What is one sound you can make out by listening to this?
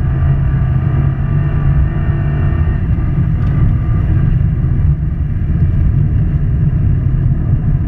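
Studded tyres grind and hiss on ice.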